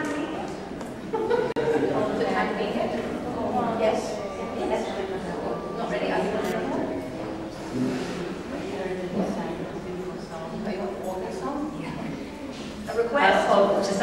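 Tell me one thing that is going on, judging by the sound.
An elderly woman talks through a microphone.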